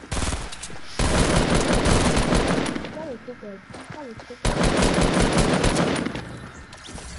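Gunshots fire in rapid bursts, close by.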